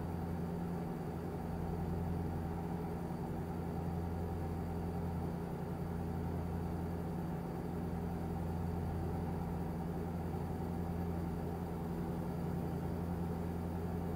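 Tyres roll on the road with a low rush.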